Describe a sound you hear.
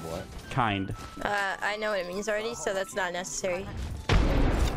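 A young woman speaks animatedly into a microphone.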